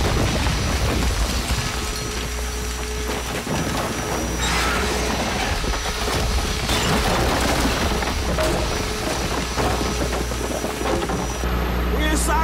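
A thick wall collapses with a loud rumbling crash.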